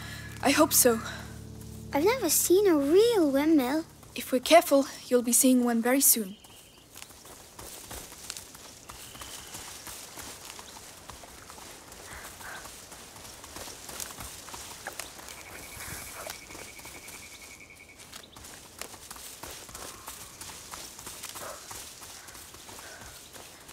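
Footsteps rustle through dry grass and leaves.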